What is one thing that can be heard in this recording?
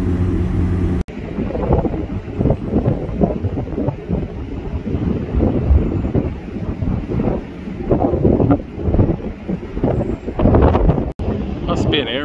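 Wind gusts roar against the microphone outdoors.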